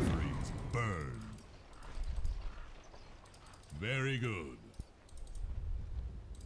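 Video game spells crackle and burst.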